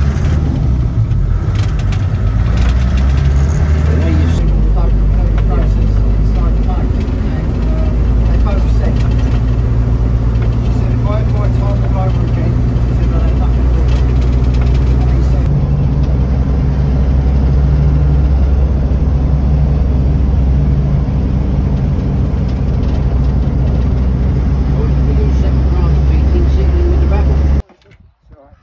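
A vehicle engine drones steadily from inside.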